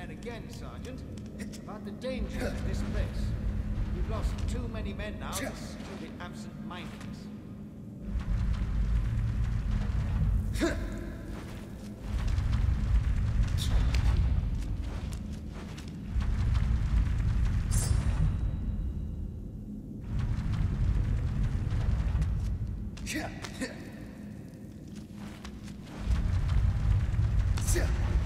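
Light footsteps patter and thud on wooden beams.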